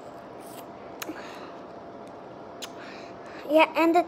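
A candy wrapper crinkles.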